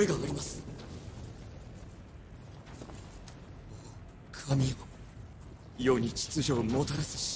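A young man speaks into a microphone close by.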